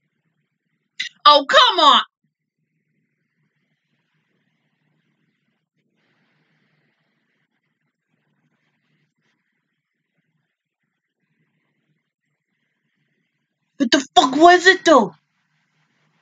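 A young woman speaks briefly and animatedly, close by.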